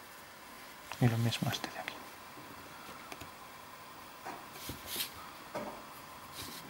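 A plastic ruler clicks and slides on paper.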